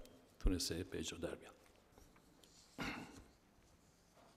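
An elderly man speaks calmly through a microphone and loudspeakers in a large hall.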